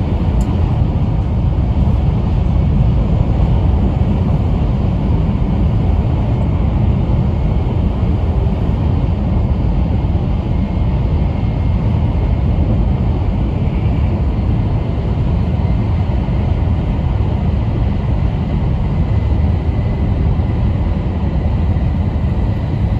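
A fast train rumbles steadily with a deep, low roar.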